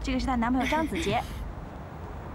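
A woman speaks cheerfully nearby.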